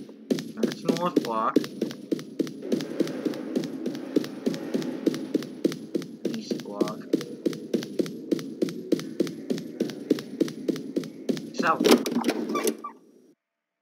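Quick footsteps run across a hard floor in a large echoing hall.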